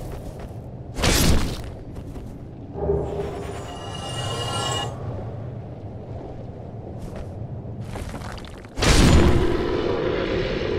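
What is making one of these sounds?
A sword strikes armour with a heavy clang.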